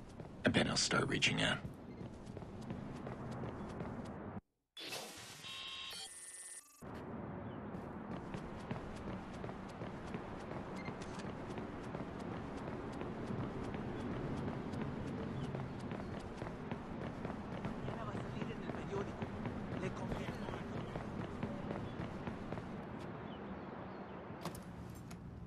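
Footsteps run quickly on a hard pavement.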